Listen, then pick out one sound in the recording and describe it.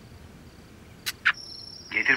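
A finger taps on a phone.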